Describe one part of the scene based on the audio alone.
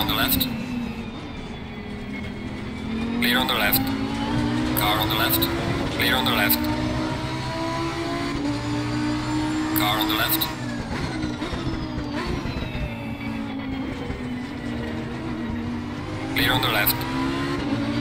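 A race car's gearbox pops sharply at each gear change.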